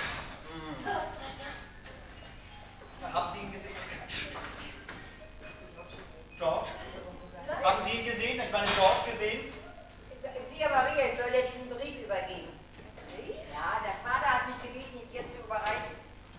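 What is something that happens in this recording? A man speaks, heard from a distance in an echoing hall.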